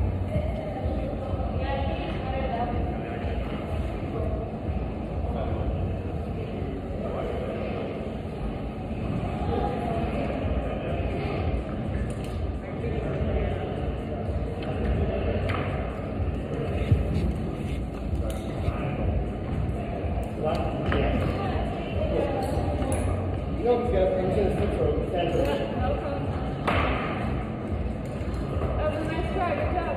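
Ventilation rumbles steadily in a large echoing hall.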